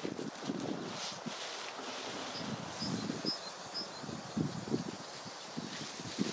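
A man's footsteps crunch on a path outdoors.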